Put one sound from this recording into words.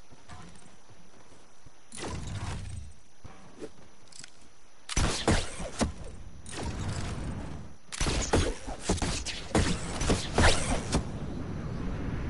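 Building pieces snap and thud into place in quick bursts.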